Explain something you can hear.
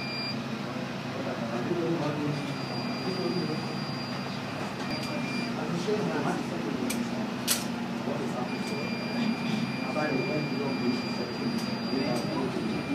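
Adult men talk among themselves in low voices nearby.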